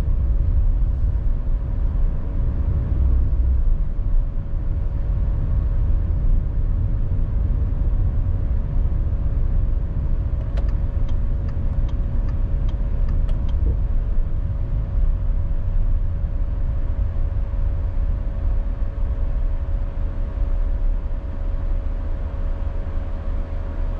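A vehicle's engine hums steadily while driving along a busy road.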